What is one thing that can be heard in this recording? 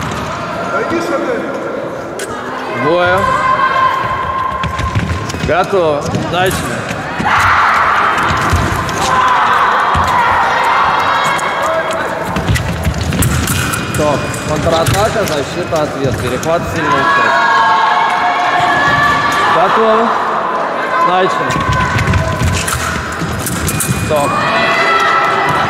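Fencers' shoes stamp and squeak on a floor.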